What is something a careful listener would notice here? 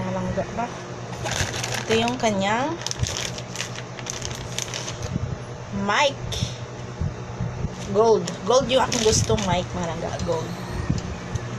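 Plastic wrapping crinkles in hands.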